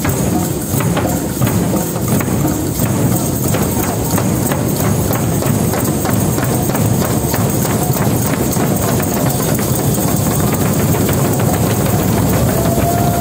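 A group of people beat hand drums in a steady rhythm in a large echoing hall.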